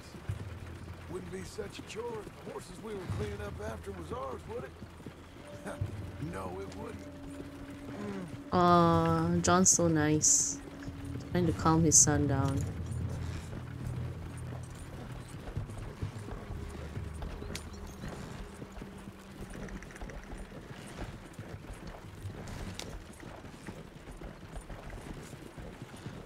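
A horse-drawn wagon rolls and creaks along a dirt track.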